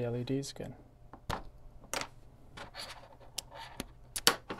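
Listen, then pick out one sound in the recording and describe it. A small plastic connector clicks and taps as it is handled.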